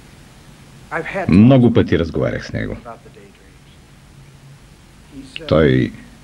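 A middle-aged man speaks loudly and with animation.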